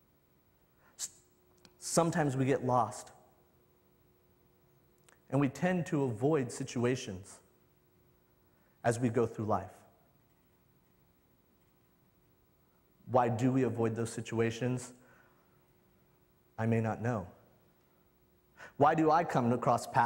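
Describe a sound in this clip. A young man speaks slowly into a microphone, pausing between phrases.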